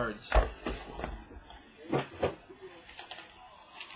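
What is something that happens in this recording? A small plastic device knocks down onto a hard table.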